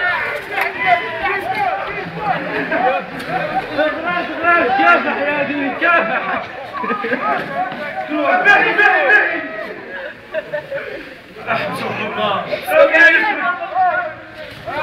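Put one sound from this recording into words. Several young men shout and laugh with excitement close by.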